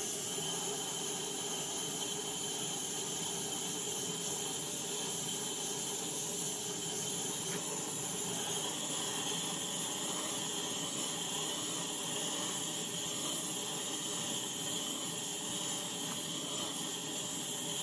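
A small gas torch hisses steadily.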